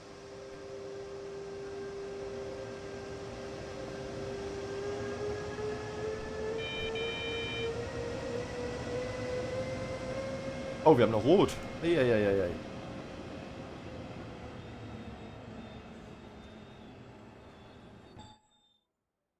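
An electric train motor hums and whines, rising in pitch as the train pulls away, then fading.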